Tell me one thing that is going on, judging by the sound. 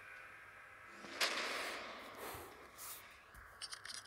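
A magical whooshing burst rings out.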